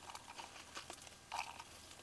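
Dry chillies rustle as they drop into a stone bowl.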